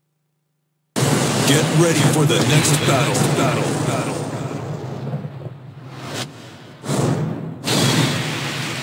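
Flames roar and crackle in a loud burst, then fade.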